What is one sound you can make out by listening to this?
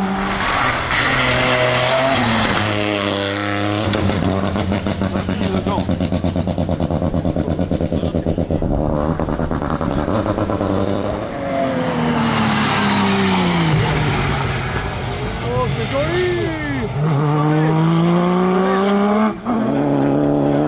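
A rally car engine roars and revs hard as the car speeds past.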